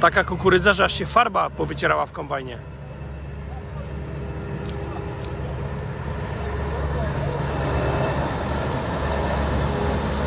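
A large harvester engine rumbles steadily and grows louder as it approaches.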